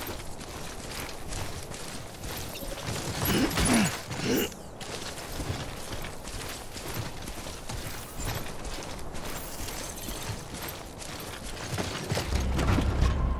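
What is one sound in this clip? Footsteps crunch through grass at a steady walking pace.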